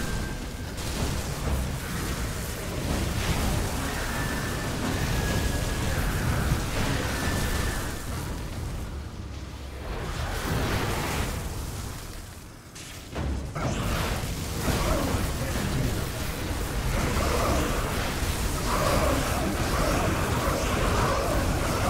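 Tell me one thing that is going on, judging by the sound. Electric bolts zap and crackle.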